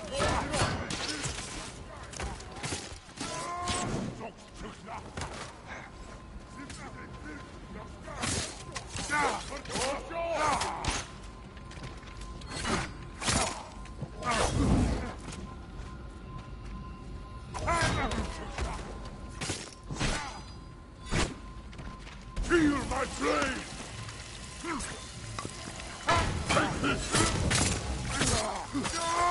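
Swords clash and ring in a fast fight.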